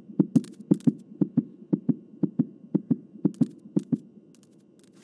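Fast footsteps thud heavily on a hard floor.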